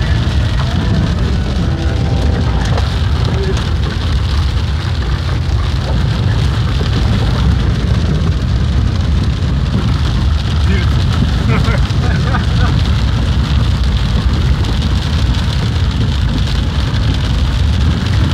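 A car drives through floodwater on a dirt road, with water rushing under its tyres.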